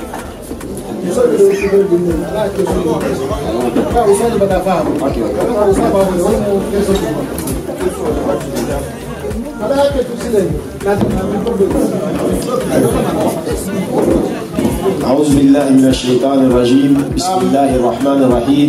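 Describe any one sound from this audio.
A man speaks into a microphone in a steady, chanting voice.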